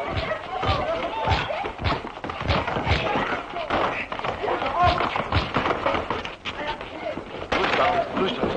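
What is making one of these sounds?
Blows and bodies thump on the floor during a scuffle.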